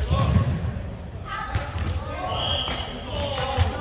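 A volleyball thuds off a player's arms.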